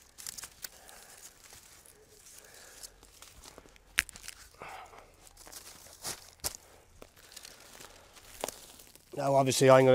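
Dry reeds rustle and scrape.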